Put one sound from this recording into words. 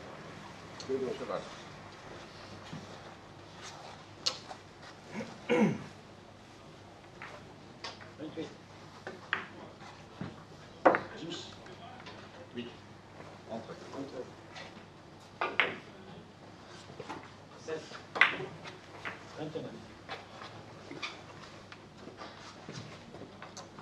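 Billiard balls click sharply against each other now and then.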